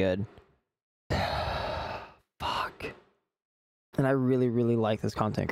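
A man speaks calmly and closely into a microphone, in short bursts with pauses.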